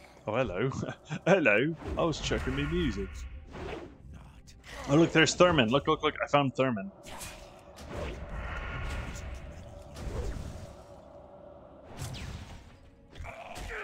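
Spells whoosh and crackle as a fighter battles in a game.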